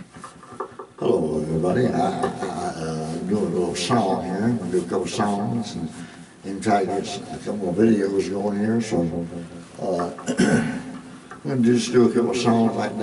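A man sings loudly into a close microphone.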